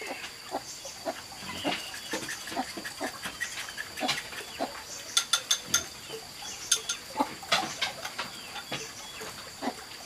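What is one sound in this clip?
Ceramic dishes clink as they are handled.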